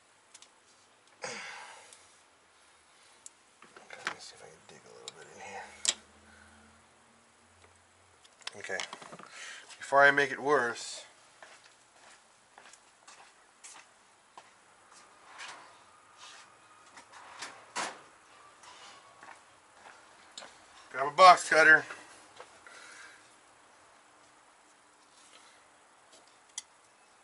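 Metal tools clink and tap against engine parts.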